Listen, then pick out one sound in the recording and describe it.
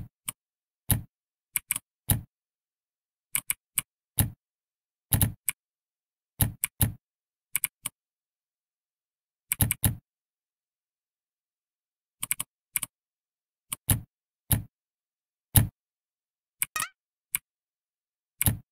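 Keyboard keys click in quick, uneven bursts.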